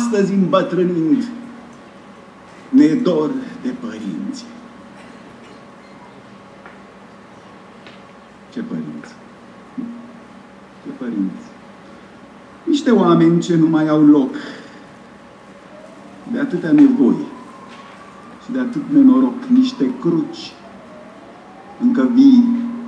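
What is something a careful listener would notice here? A man speaks calmly into a microphone, in bursts with pauses, in a reverberant space.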